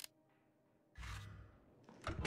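A heavy lid thuds shut.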